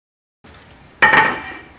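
A glass bowl clinks against a counter.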